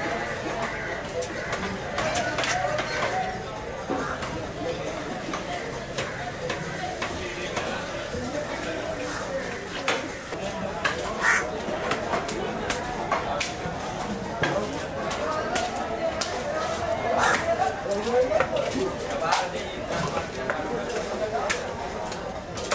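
A cleaver chops through fish onto a wooden chopping block.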